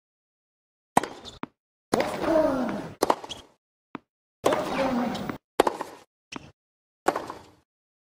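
A tennis ball is struck with a racket, back and forth.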